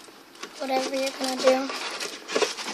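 A young child sings out in short high notes close by.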